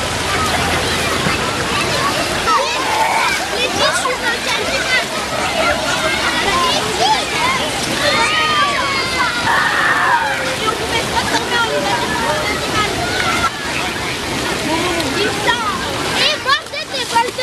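Water splashes as children move through a pool.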